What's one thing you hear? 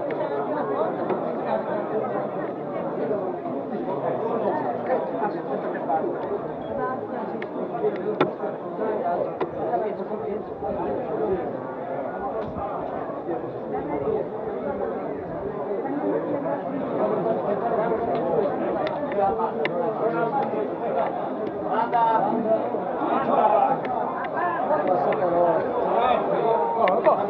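A crowd of men and women chatter close by, outdoors.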